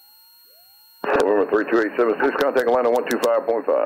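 A woman speaks calmly over a headset intercom.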